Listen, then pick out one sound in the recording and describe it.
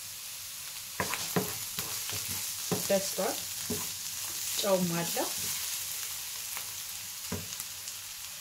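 A wooden spoon stirs and scrapes against a frying pan.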